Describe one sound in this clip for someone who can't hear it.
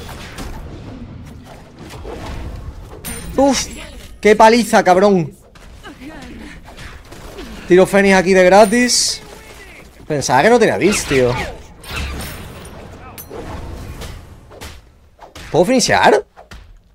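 Game weapons clash and magic effects whoosh.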